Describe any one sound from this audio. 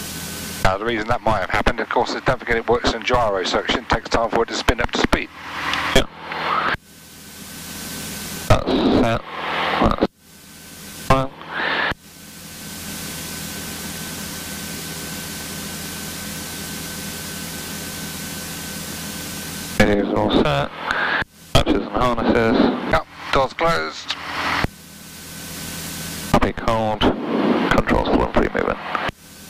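A man speaks over a crackly headset radio in short bursts.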